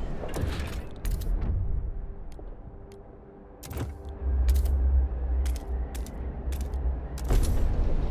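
Soft interface clicks sound as menus open and close.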